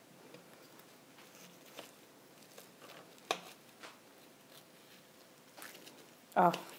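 A knife cuts through crisp flaky pastry with soft crackles.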